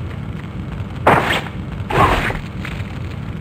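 A sword slashes into a body.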